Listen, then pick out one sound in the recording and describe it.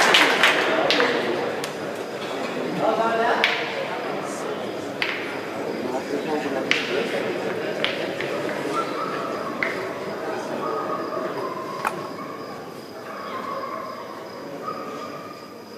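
A crowd of spectators chatters.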